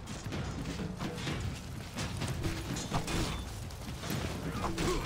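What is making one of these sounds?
Metal weapons clash and clang in a noisy battle.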